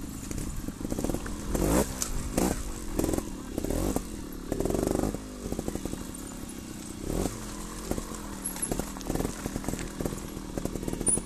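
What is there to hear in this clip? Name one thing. A bicycle frame rattles and knocks over bumps.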